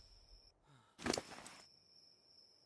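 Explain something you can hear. A game menu opens with a short whooshing sound.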